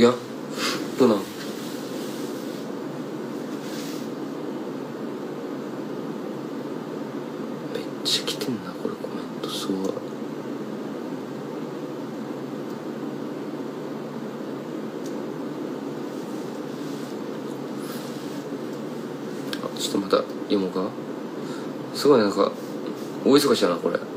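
A young man speaks softly and close to a phone microphone, in short bursts with long pauses.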